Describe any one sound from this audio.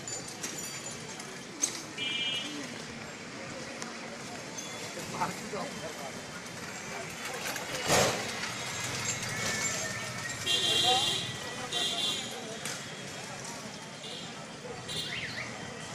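Outdoor street traffic hums steadily in the background.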